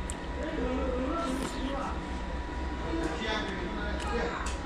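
A man slurps soup loudly from a spoon.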